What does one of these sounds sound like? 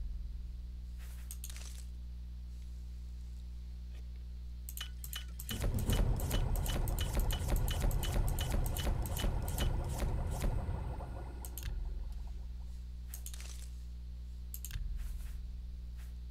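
Soft clicks tick as menu items are picked.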